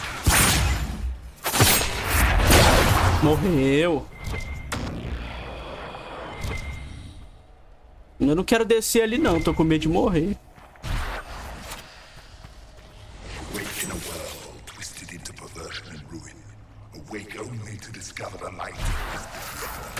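Magic spells burst with whooshing blasts.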